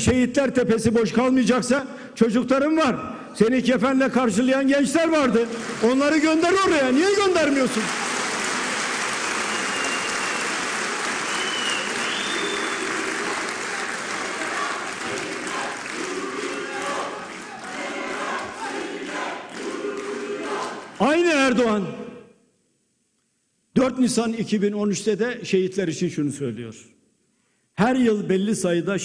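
An elderly man speaks forcefully through a microphone in a large echoing hall.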